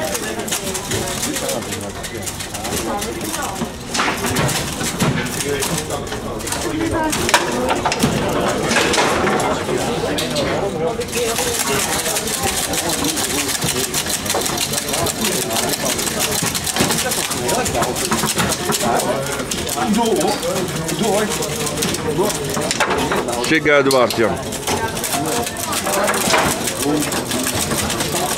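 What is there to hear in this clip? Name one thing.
Foosball rods rattle and clack in their bearings.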